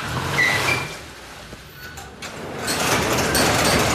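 A garage door rattles as it is pulled down.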